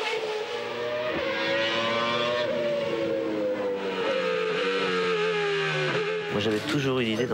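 A racing engine whines at high revs and slowly drops in pitch.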